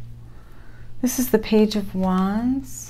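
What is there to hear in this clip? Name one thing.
A middle-aged woman speaks calmly and close into a microphone.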